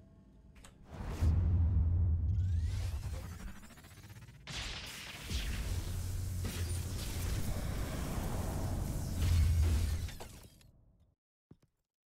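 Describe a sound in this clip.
Heavy blows thud and crash loudly in a fight.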